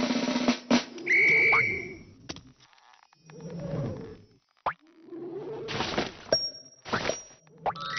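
Short game sound effects chime and whoosh as a cartoon character swings and climbs.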